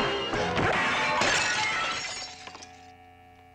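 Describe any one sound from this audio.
Glass shatters with a loud crash.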